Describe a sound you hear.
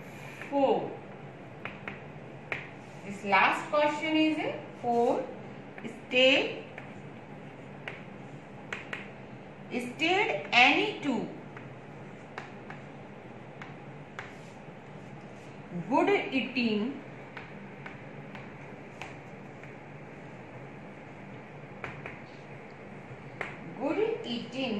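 A woman speaks calmly, close by, in short phrases.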